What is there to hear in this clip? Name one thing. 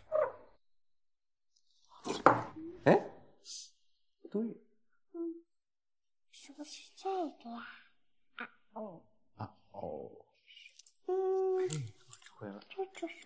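A young girl speaks in a high voice.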